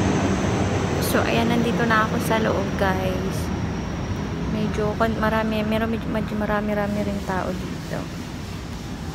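A young woman speaks softly close by, in a large echoing hall.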